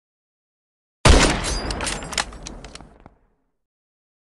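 A gunshot bangs loudly and echoes away.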